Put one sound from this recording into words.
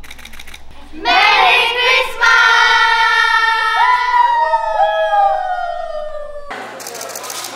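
A group of young women call out a greeting together in cheerful, high voices.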